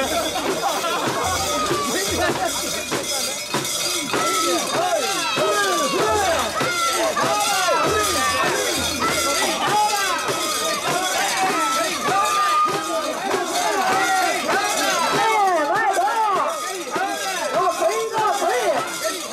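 A crowd of men chant and shout loudly together outdoors.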